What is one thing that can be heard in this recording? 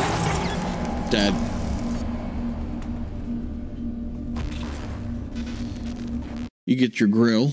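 Loud game combat noise roars and crackles.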